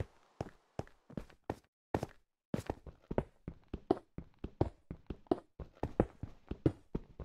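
A game pickaxe strikes stone blocks in quick, repeated knocks.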